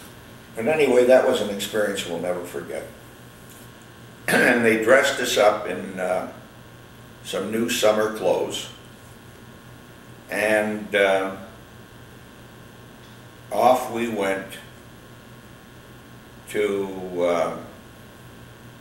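An elderly man speaks calmly and slowly nearby, with long pauses.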